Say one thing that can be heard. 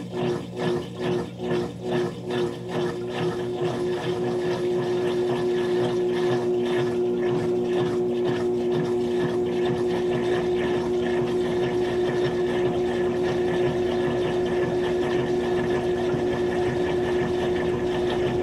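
A washing machine drum spins with a steady motor hum that pulses at first, then evens out.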